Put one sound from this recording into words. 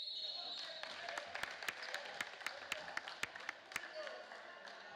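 A basketball bounces rhythmically on the court.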